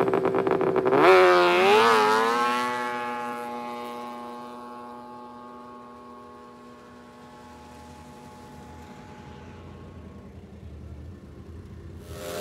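A snowmobile roars off at full throttle and fades into the distance.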